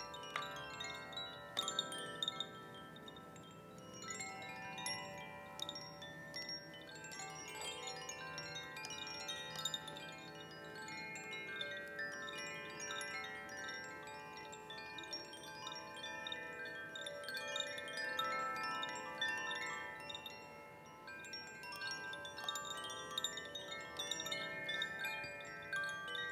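Wooden chimes clatter and ring out in an echoing hall, heard through an online call.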